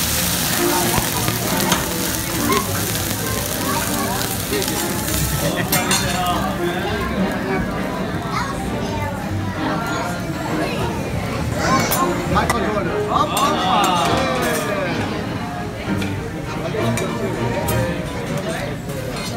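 A group of people chatter and laugh nearby.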